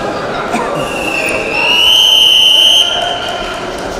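A referee blows a whistle long and loud.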